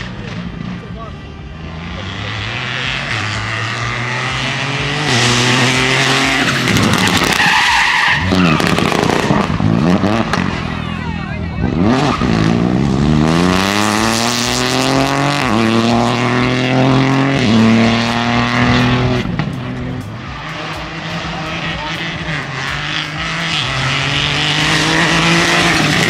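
A rally car engine roars past at speed, revving up and down through the gears.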